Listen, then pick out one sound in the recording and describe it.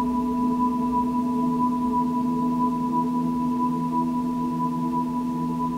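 Layered electronic tones hum in a sustained drone.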